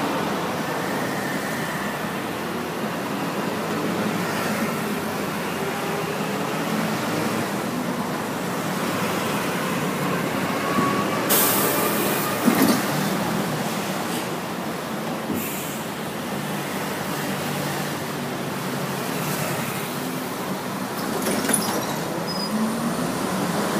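Steady street traffic rumbles past outdoors.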